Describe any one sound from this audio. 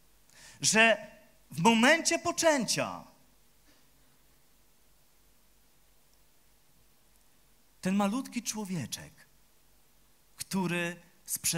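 A man speaks slowly and with feeling into a microphone through loudspeakers, with pauses.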